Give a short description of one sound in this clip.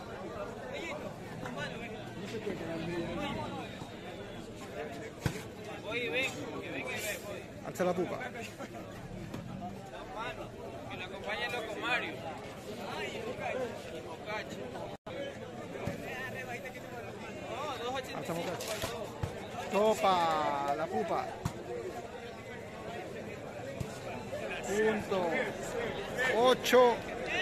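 A large outdoor crowd chatters and shouts steadily.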